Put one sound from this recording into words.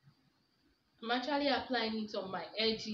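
A young woman speaks close up, with animation.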